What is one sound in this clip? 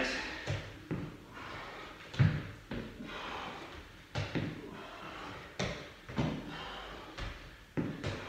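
Feet and bodies thump softly on an exercise mat.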